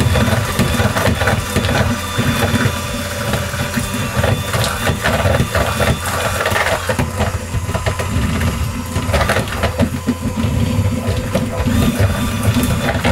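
An electric hand mixer whirs as it beats thick cake batter in a plastic bowl.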